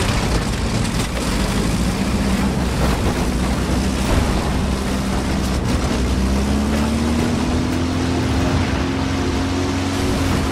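A heavy tank engine rumbles and drones steadily.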